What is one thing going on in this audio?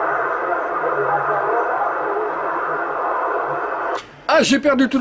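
Radio static hisses and crackles from a receiver's speaker.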